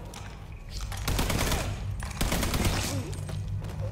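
A rifle fires several loud shots in a burst.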